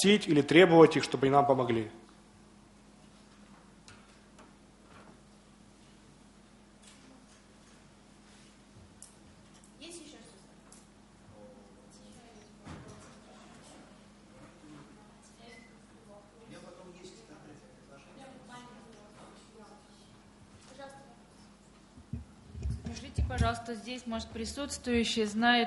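A man speaks loudly through a microphone in a large room.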